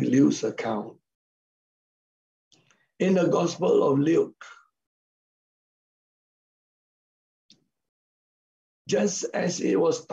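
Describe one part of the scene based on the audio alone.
A middle-aged man speaks calmly through an online call, in short bursts with pauses.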